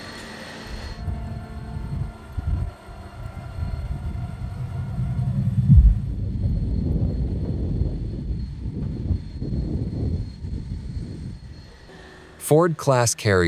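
Wind blows hard across an open space.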